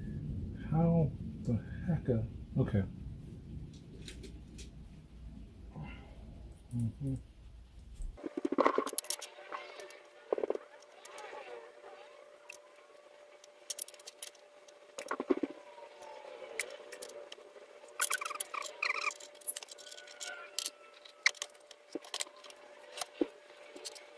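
Fingers handle plastic parts and wires, making small clicks and rustles close by.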